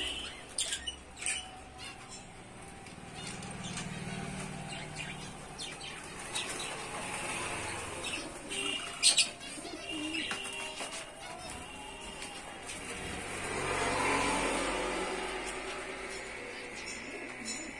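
Small birds chirp and twitter in cages throughout.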